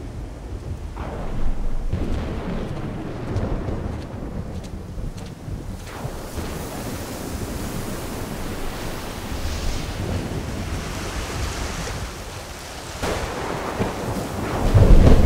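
Waves wash and crash against a rocky shore.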